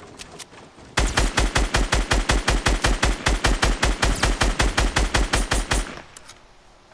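Rapid gunfire rattles in a long, steady burst.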